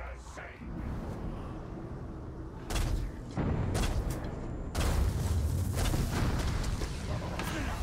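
A bow twangs as arrows are loosed.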